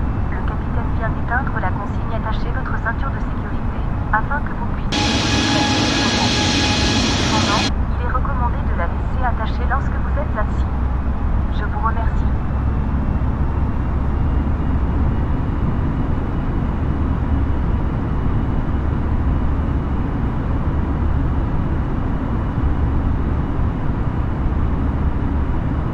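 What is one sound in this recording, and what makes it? Jet engines roar steadily with a low, even rumble.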